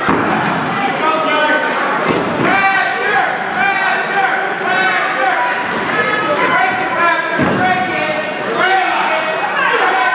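Wrestlers' feet thud on a ring canvas.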